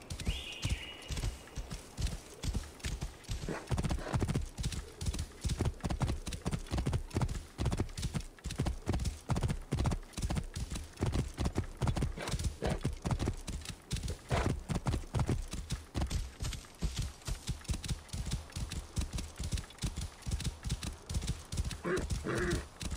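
Hooves pound rapidly on sand as a mount gallops.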